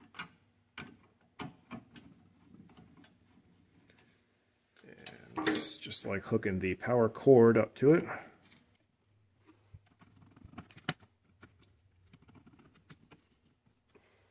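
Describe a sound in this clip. A screwdriver clicks as it tightens small screws.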